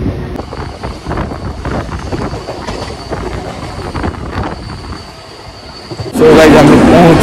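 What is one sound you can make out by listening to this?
A train rattles along the tracks outdoors.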